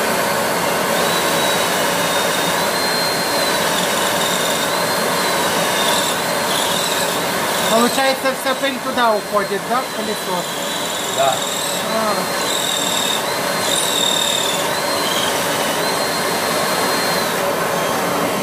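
A cordless drill whirs into the wall, speeding up and slowing down in bursts.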